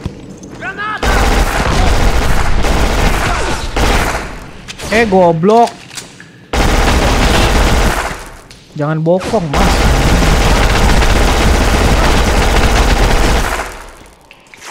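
Automatic gunfire rattles loudly in rapid bursts.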